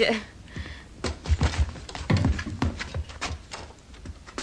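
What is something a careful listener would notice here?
Chairs knock and scrape on a wooden floor.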